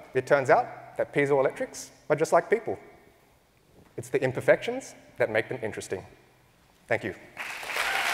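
A young man speaks calmly into a microphone in a large hall.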